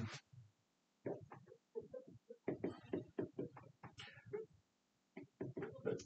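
A marker squeaks and taps on a glass board.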